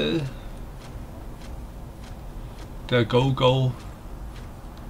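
A middle-aged man speaks briefly through a headset microphone.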